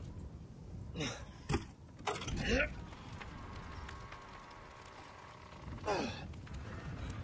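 Heavy wooden doors creak and groan as they are pushed open.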